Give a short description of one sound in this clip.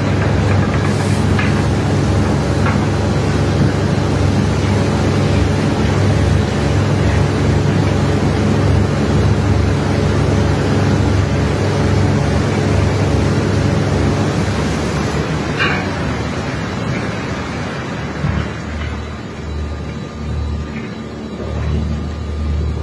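Water gushes from a hose and splashes onto a hard surface.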